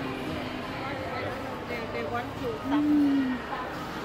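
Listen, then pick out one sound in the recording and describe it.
Shoppers murmur and chatter nearby in a busy indoor space.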